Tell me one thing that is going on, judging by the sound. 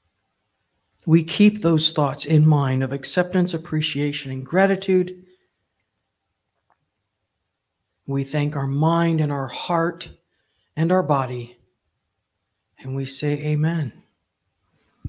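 An older woman speaks calmly into a microphone, with long pauses.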